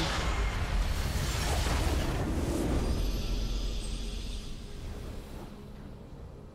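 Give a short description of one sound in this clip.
A game's explosion blasts loudly and fades.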